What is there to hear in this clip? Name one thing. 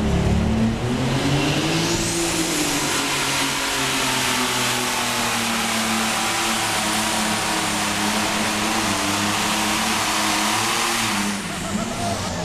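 A tractor engine roars loudly and steadily as it pulls away.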